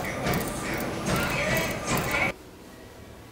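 Running footsteps thud on a treadmill belt.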